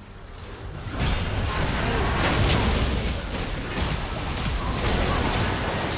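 Game spell effects burst and clash loudly during a fight.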